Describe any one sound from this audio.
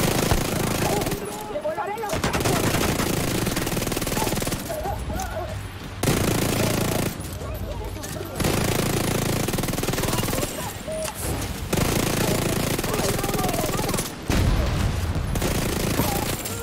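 Gunfire bursts rapidly in short volleys.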